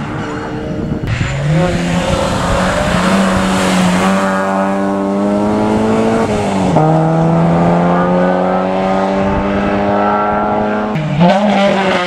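A second rally car engine roars and revs through a bend.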